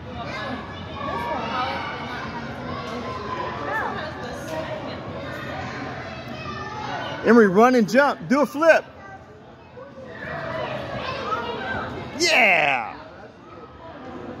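Children and adults chatter in the background of a large echoing hall.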